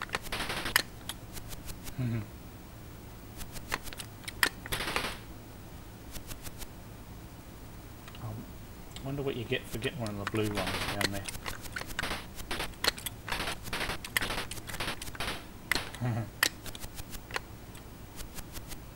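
Retro video game sound effects beep and crackle in short bursts.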